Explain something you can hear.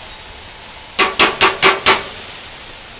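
Metal tongs click together several times.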